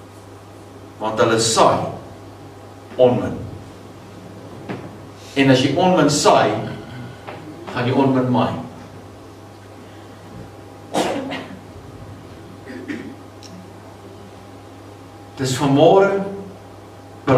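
A man preaches with emphasis into a headset microphone, heard through loudspeakers in an echoing room, in short bursts with pauses.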